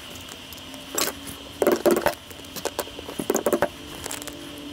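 A small hammer taps on metal.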